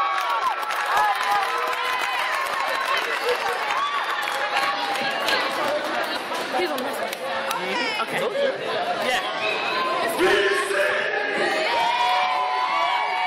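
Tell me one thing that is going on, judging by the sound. A crowd of young people cheers and shouts in a large echoing hall.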